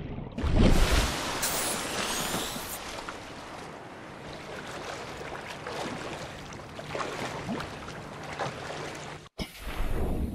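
Waves wash and lap on open water.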